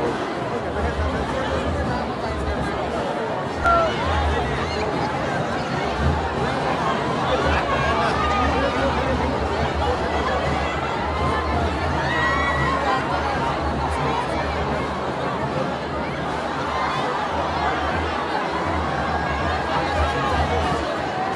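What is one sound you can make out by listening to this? A large crowd outdoors cheers and shouts all around.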